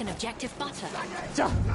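Metal clangs sharply.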